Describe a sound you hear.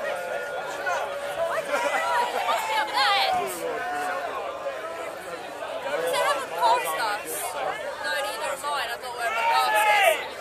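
A crowd of men and women chatter and shout all around outdoors.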